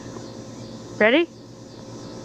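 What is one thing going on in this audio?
A young dog gives a single short, high yelping bark close by.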